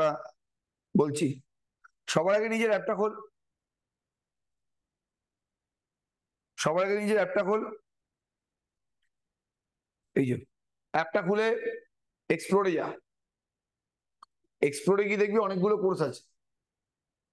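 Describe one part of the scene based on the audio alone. A young man speaks calmly into a nearby microphone, in short phrases with pauses.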